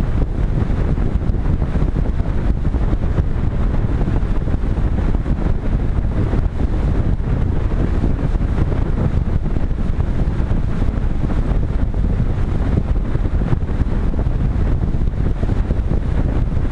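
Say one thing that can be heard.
Wind rushes loudly and steadily past a small aircraft in flight.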